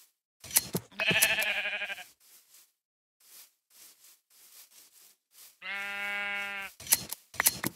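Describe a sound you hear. A sheep bleats.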